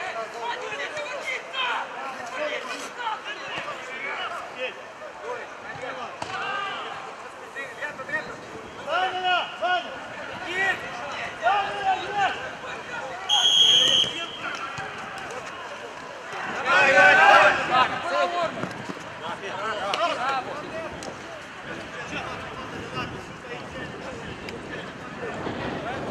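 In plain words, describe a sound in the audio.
Men shout and call out across an open pitch.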